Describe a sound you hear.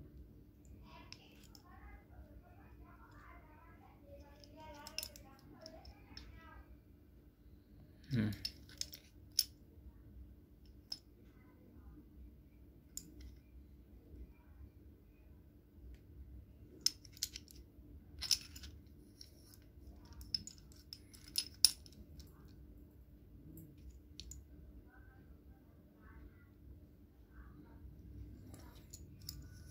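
Screw threads of a metal clamp rasp as they turn.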